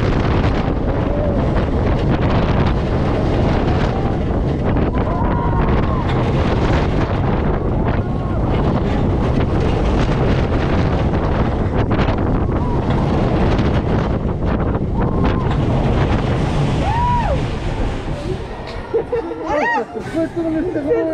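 Young women scream and shout with excitement.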